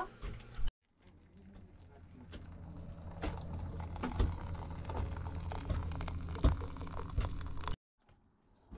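Water pours from a kettle into a small metal pot.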